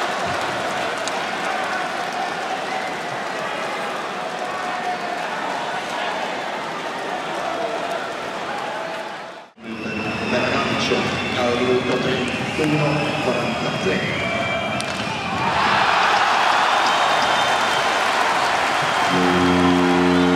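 A large crowd murmurs and roars in an echoing arena.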